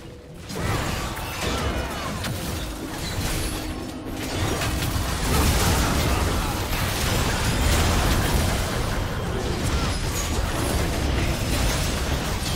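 Spell effects and weapon hits clash in a busy game battle.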